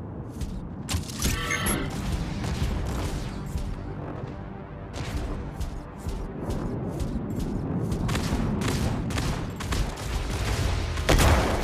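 Laser weapons fire in rapid bursts with sharp zaps.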